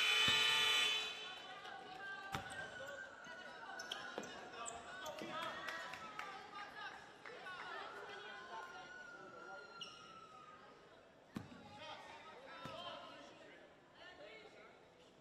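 Spectators chatter and call out in a large echoing gym.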